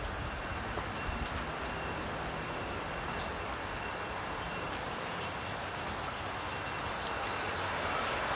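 Water trickles through a shallow stone channel.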